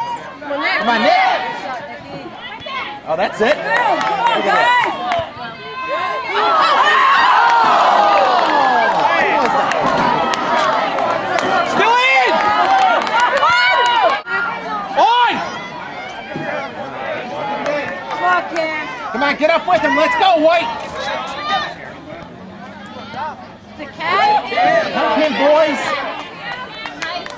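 A crowd of spectators shouts and cheers nearby outdoors.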